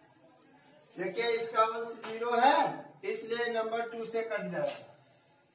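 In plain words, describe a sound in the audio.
A man speaks clearly and steadily, close by.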